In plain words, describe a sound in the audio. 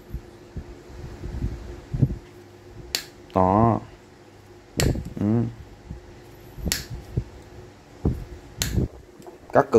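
Pliers snip through thin wire with sharp clicks.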